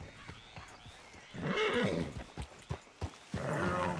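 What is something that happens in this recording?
Leaves and brush rustle as a horse pushes through.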